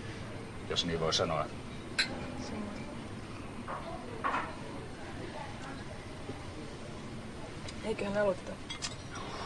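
A woman speaks briefly and softly nearby.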